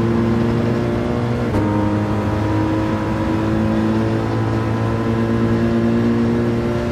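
A racing car engine roars at high revs in a steady drone.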